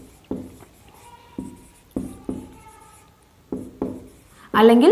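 A marker taps on a whiteboard.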